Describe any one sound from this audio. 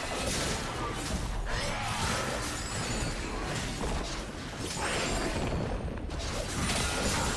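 Magic spells and weapon blows crackle and clash in a fast fantasy battle.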